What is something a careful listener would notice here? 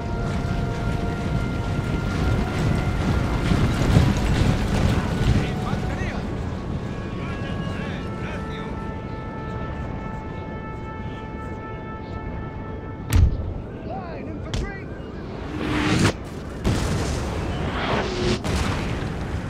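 Muskets fire in sharp volleys.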